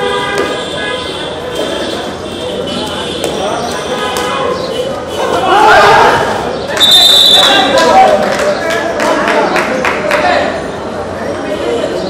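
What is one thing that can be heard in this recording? A young man chants rapidly under his breath.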